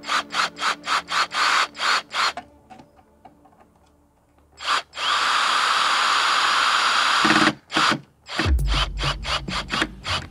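A cordless drill whirs in short bursts and steady runs, driving a screw into wood.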